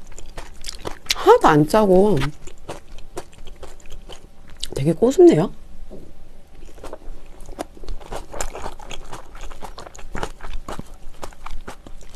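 A young woman chews and slurps food noisily close to a microphone.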